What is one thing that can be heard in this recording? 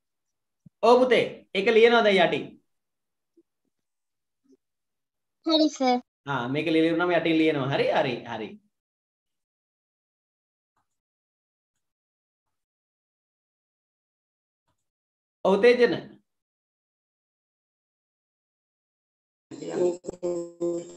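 A young man speaks calmly over an online call, in short bursts with pauses.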